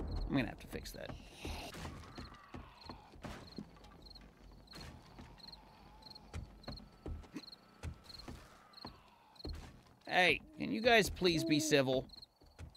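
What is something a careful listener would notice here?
Footsteps thud on wooden boards and roof tiles.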